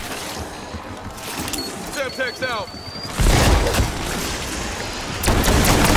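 Zombies snarl and groan nearby.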